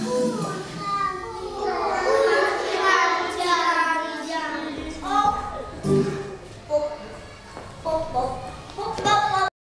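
Young children sing together in a room with some echo.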